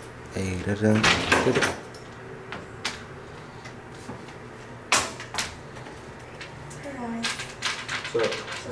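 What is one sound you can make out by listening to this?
A young man knocks on a door.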